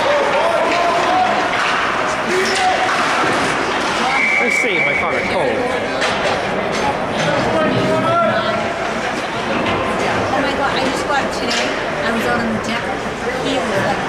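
Hockey sticks clack sharply against the puck and the ice.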